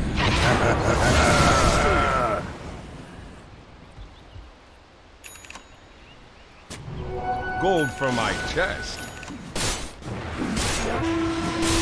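Magic spells whoosh and crackle during a fight in a video game.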